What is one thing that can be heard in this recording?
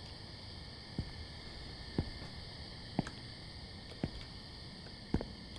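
Footsteps fall slowly and evenly on hard ground.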